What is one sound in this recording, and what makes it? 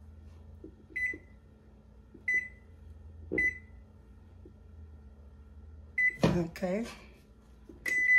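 An oven control panel beeps at each button press.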